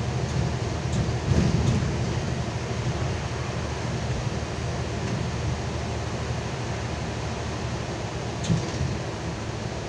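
The bus body rattles and clunks over the road.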